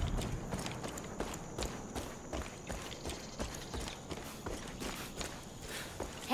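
Footsteps crunch steadily on dry dirt and gravel.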